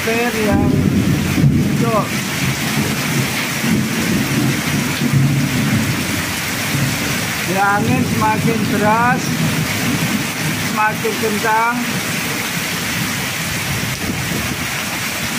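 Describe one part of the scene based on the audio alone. Strong wind gusts and rustles the leaves of trees.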